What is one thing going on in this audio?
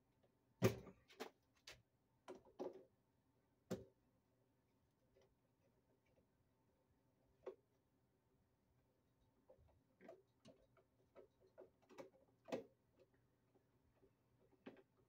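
A hand tool clicks and taps against metal close by.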